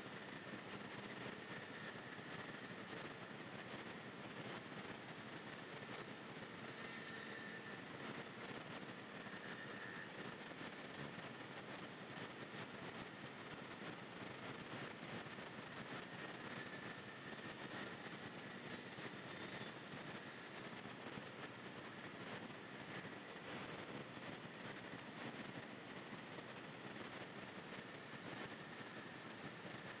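A small motor scooter engine hums steadily while riding.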